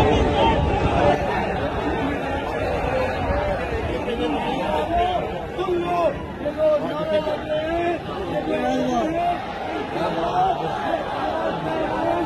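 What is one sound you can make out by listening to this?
Men nearby talk and shout among the crowd.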